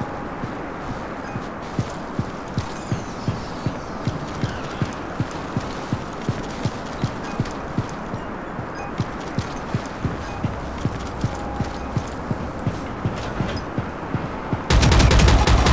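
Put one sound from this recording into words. Footsteps thud at a steady, quick pace.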